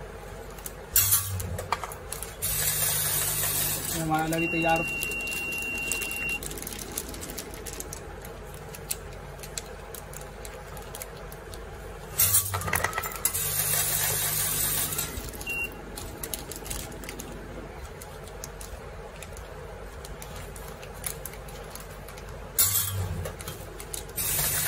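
Granules rattle as they pour into a pouch.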